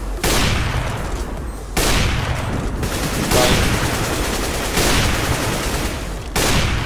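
A rifle fires loud single shots, each followed by a rolling echo.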